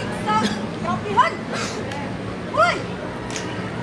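A young woman shouts drill commands loudly.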